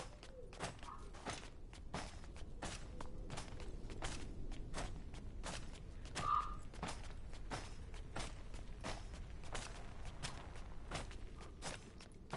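Quick footsteps run on stone.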